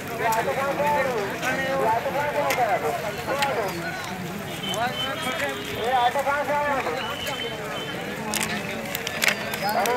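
A crowd of men talks and calls out loudly nearby, outdoors.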